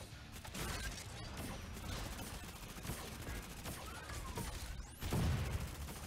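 A heavy robot stomps with loud metal thuds.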